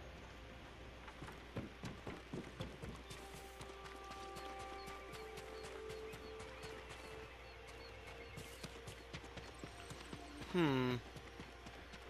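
Footsteps walk softly over the ground.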